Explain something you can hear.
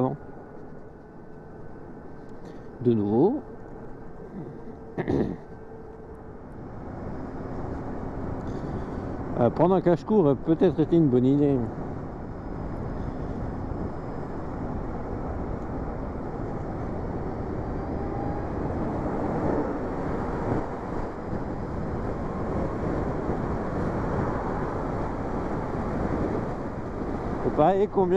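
Wind roars steadily past a moving motorcycle, growing louder as it speeds up.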